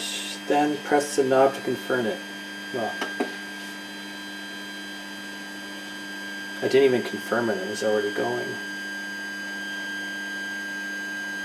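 A machine hums steadily with its fans running.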